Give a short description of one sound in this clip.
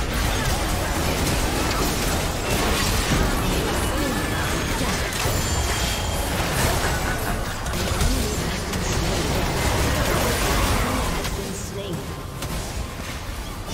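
Magic spells crackle and burst in a busy video game battle.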